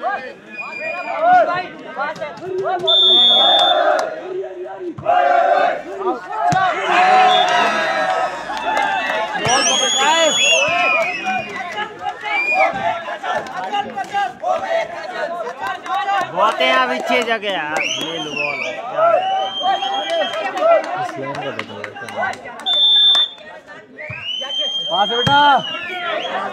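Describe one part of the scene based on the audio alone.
Young men call out loudly to each other nearby.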